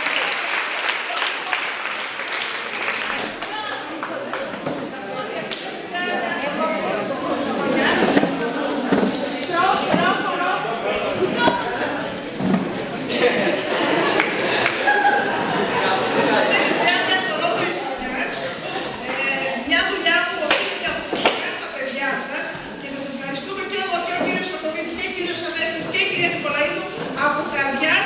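A crowd of children chatters on stage.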